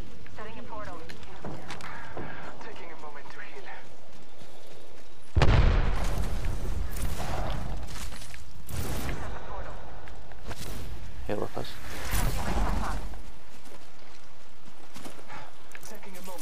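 Footsteps thud on grass and dirt.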